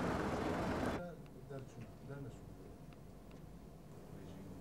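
A man speaks calmly at a distance.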